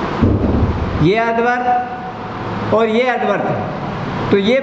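A man speaks calmly nearby, in short phrases.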